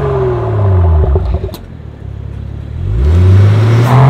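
A car exhaust pops and crackles as the engine falls back.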